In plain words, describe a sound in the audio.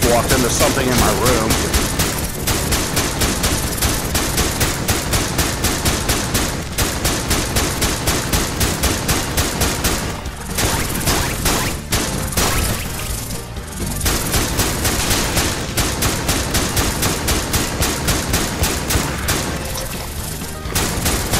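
A gun fires in fast, steady bursts of shots.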